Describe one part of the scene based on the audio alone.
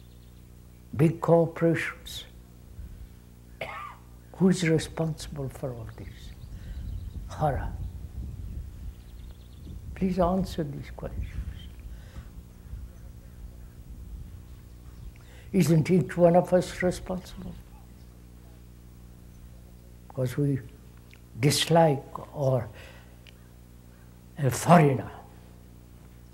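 An elderly man speaks slowly and calmly, with long pauses, close to a microphone.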